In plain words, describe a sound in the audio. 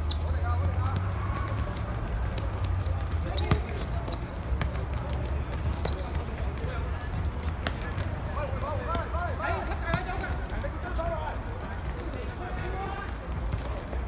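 Several men shout to each other at a distance outdoors.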